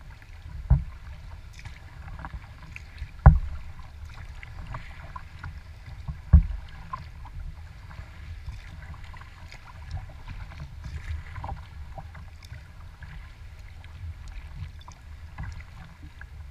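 Small waves lap and splash against a kayak's hull.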